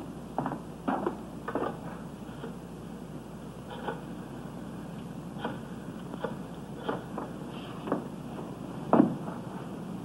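A rotary telephone dial clicks as it turns.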